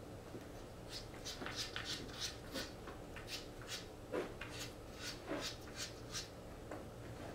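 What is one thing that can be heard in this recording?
Footsteps pad on a carpeted floor.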